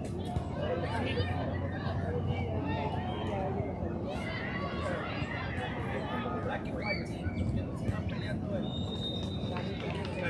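Several men chat and talk over one another nearby outdoors.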